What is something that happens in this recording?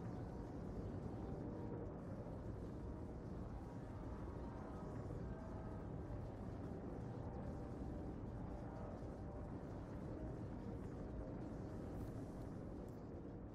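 Spaceship engines roar with a deep, steady rumble.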